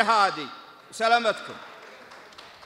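An elderly man speaks into a microphone over loudspeakers.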